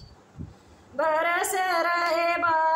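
A woman sings a long held melody, close by.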